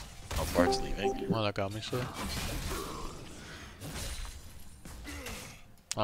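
Video game combat effects clash, zap and whoosh.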